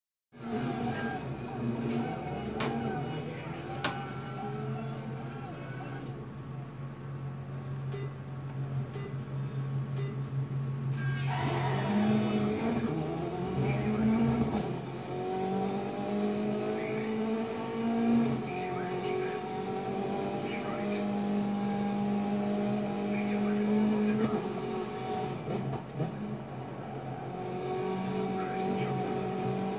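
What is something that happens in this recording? A rally car engine revs and roars through speakers.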